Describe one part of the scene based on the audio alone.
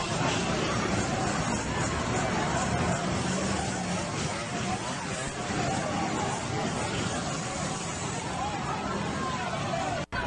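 Motorcycle engines rev and idle nearby.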